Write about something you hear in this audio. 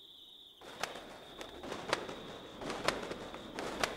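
A bat flaps its wings close by.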